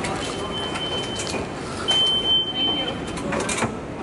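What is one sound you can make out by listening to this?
A turnstile clacks as it turns.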